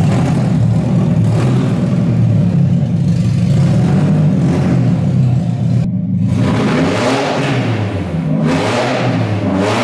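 A car engine idles with a steady, rough rumble.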